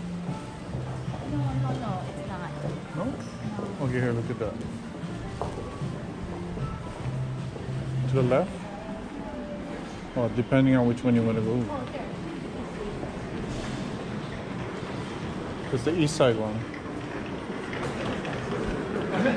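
A hum of a busy indoor hall goes on throughout.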